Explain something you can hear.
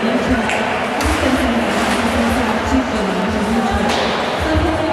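A puck cracks against a stick.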